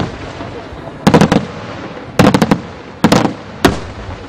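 Firework shells crackle and pop in quick bursts.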